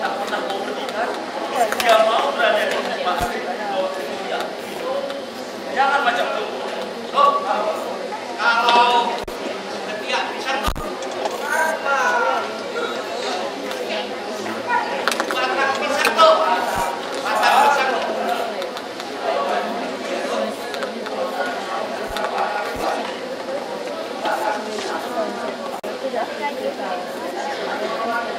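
A man speaks with animation into a microphone, heard through loudspeakers in a large hall.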